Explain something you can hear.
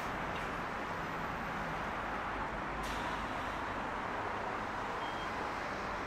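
A bus idles nearby with a low rumble.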